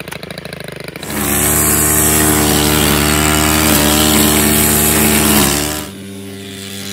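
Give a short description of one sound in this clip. A petrol string trimmer engine revs to a loud, steady whine, then drops away.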